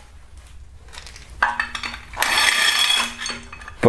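Metal parts clink and tap.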